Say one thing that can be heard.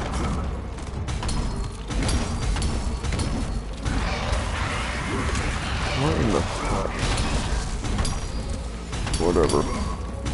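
Metal blades clash and slash in quick, sharp strikes.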